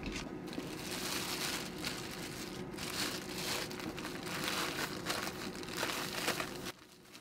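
Sugar shakes and rustles inside a plastic bag.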